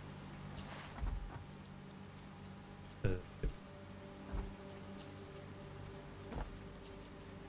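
Short clicks and thuds sound now and then.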